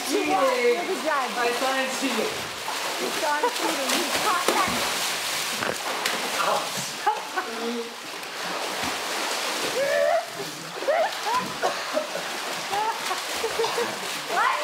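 Water splashes and churns loudly as swimmers thrash and kick.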